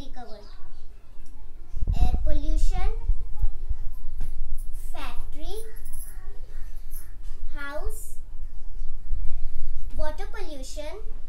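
A young girl speaks close by, explaining calmly.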